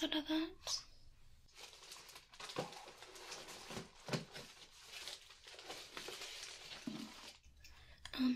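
Plastic items rustle and clatter as a hand rummages through a bin.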